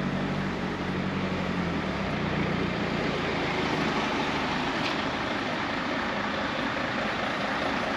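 A van engine idles and rolls slowly past close by.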